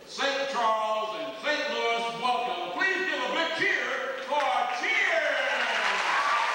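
A man sings into a microphone in a large echoing hall.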